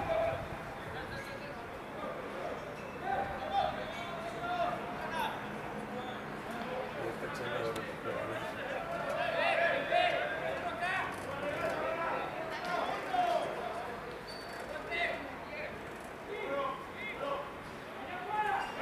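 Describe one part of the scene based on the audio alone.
Men shout and call to each other across an open outdoor field.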